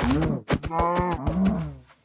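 A cow moos.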